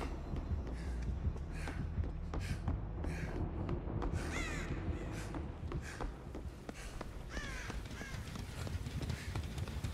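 Footsteps thud steadily across a hard floor.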